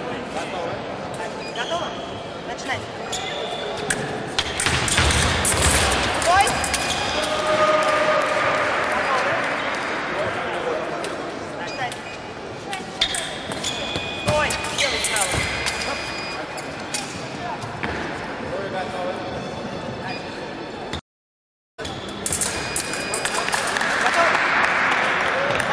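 Fencers' shoes squeak and thud on a wooden floor in a large echoing hall.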